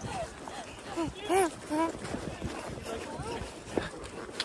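A toddler squeals and babbles happily close by.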